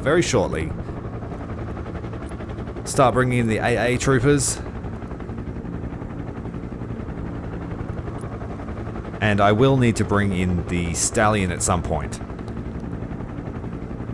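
Helicopter rotors thump steadily overhead.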